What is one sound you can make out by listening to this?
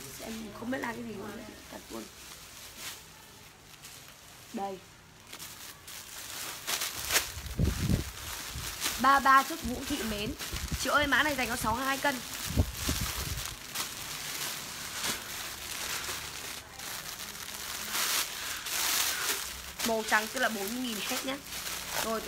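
Plastic bags crinkle and rustle as they are handled.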